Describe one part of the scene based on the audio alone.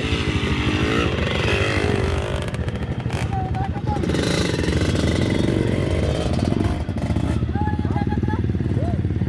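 A dirt bike engine idles and revs up close with a rapid putter.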